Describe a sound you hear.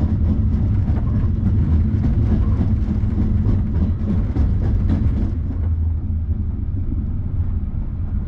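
A train rumbles and clatters steadily along the tracks, heard from inside a carriage.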